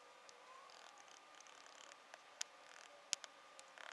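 A hammer taps a nail.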